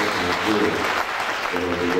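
Several people clap their hands.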